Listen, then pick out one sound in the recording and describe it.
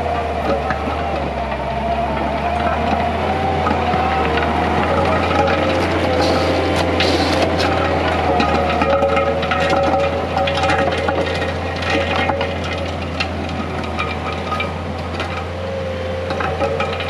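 A diesel engine of a small tracked loader rumbles and whines steadily nearby.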